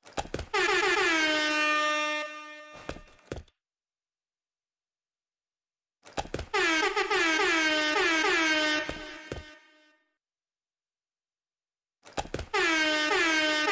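An air horn blasts in loud, repeated honks.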